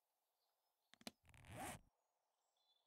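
A menu opens with a short whoosh.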